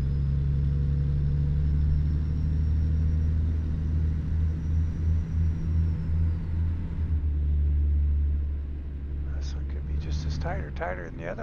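A truck's diesel engine rumbles steadily at a low pitch.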